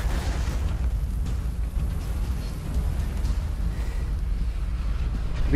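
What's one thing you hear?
Rock and debris crash and rumble heavily.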